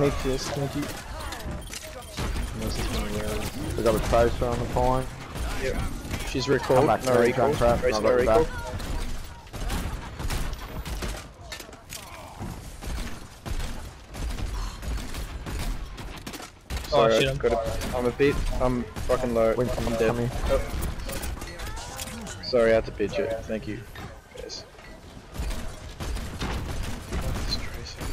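A gun fires bursts of rapid shots.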